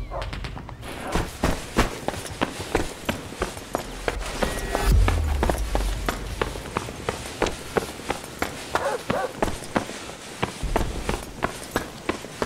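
Footsteps run quickly over gravel and rubble.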